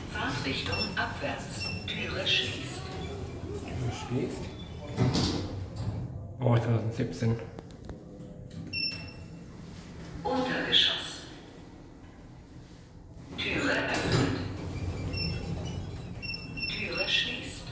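An elevator chimes with short electronic tones.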